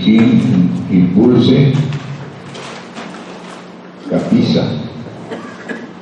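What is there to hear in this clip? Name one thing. A man speaks to a group in an echoing room, heard from a distance.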